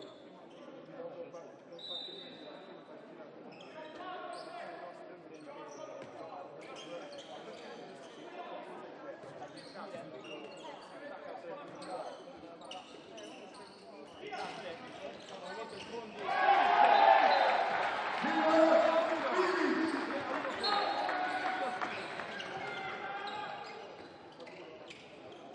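Sneakers squeak sharply on a hall floor.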